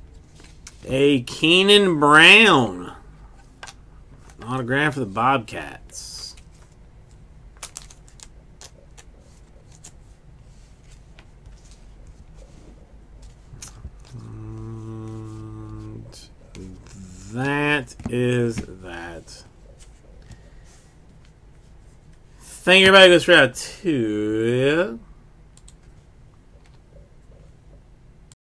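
Trading cards rustle and slap softly as they are shuffled by hand.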